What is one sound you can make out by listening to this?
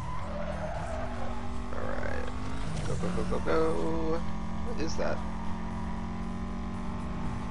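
Tyres hiss on the road at speed.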